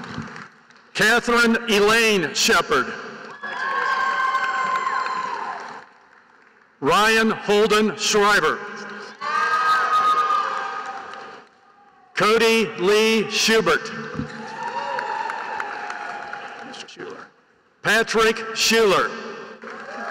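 An older man reads out names through a loudspeaker in a large echoing hall.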